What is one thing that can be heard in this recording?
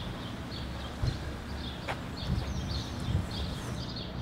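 A man's footsteps thud softly on pavement.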